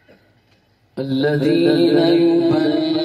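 A man sings out loudly through a microphone and loudspeakers.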